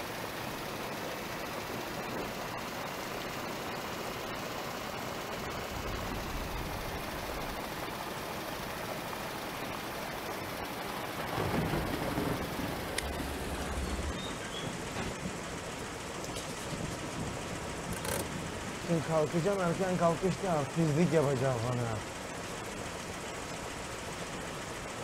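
Rain patters steadily on a windscreen.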